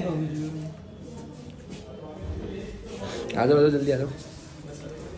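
A young man talks casually close by.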